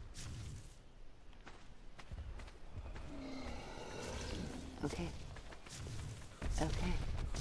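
Footsteps crunch softly on sand.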